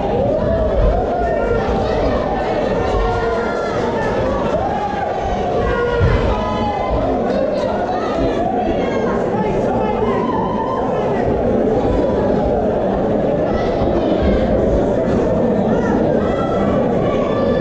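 A crowd of spectators chatters and shouts loudly throughout in a large echoing hall.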